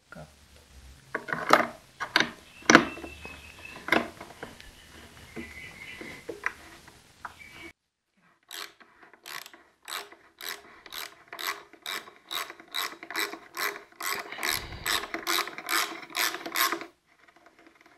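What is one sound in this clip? A ratchet wrench clicks rapidly as it turns a bolt.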